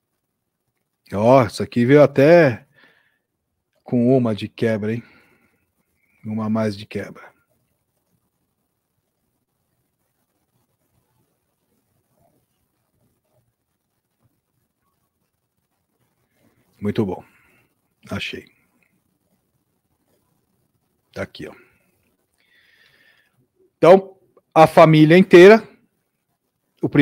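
A middle-aged man speaks calmly into a close microphone, in short bursts with long pauses.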